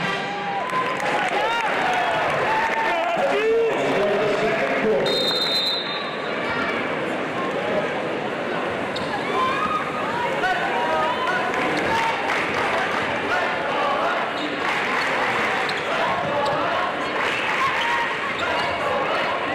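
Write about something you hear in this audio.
Sneakers squeak on a hardwood floor.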